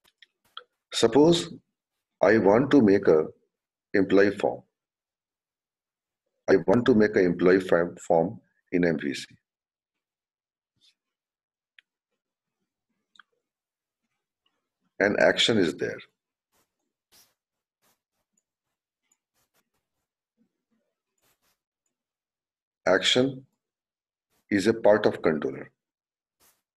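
A man speaks calmly through a microphone, in short phrases with long pauses.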